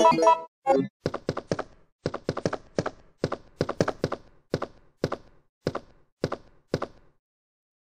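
Footsteps clatter in an even rhythm on a hard metal floor.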